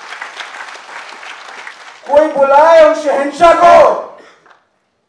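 A young man speaks forcefully into a microphone.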